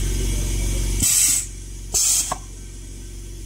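A pneumatic press hisses in two short bursts.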